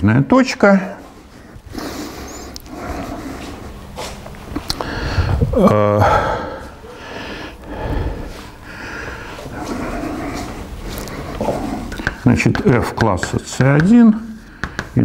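An elderly man lectures calmly in an echoing room.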